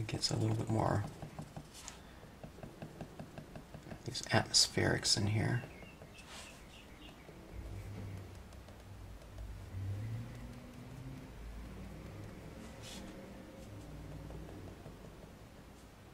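A pen dabs and taps lightly on paper.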